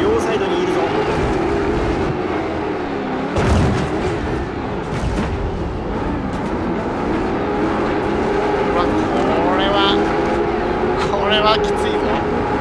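Tyres skid and rumble over loose dirt.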